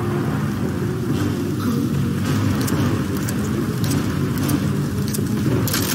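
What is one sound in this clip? A shotgun is pumped and reloaded with metallic clicks.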